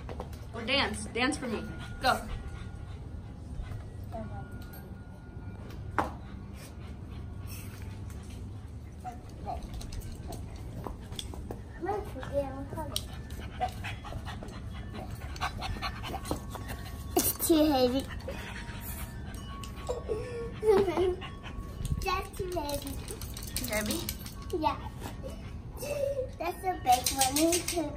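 A young girl talks and squeals playfully close by.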